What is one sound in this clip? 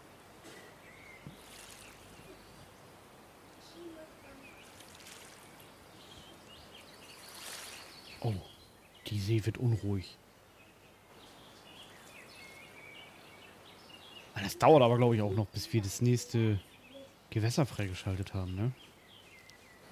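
Water laps softly at a shore.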